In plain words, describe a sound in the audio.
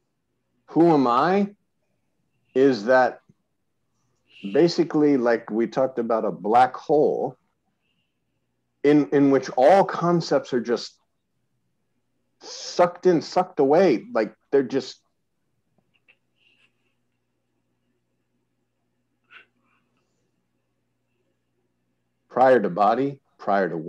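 A middle-aged man speaks calmly and slowly into a microphone, heard as if over an online call.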